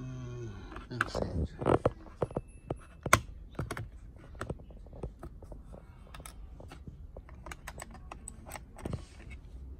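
A plastic battery cover clicks and snaps on a computer mouse.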